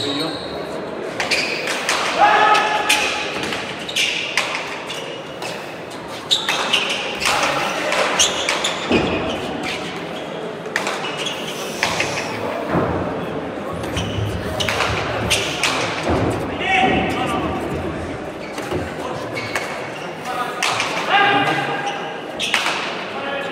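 A hard ball smacks sharply against a wall and floor, echoing in a large hall.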